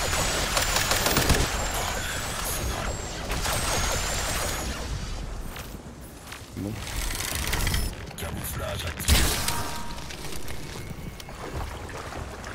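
Gunfire and explosions boom loudly.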